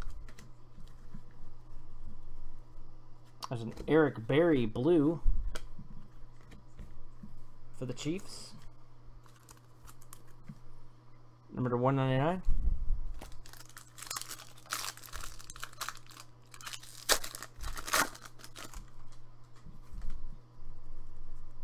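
Stiff cards rustle and slide against each other.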